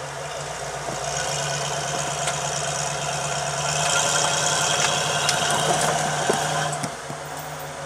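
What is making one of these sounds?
An engine revs hard as an off-road vehicle climbs.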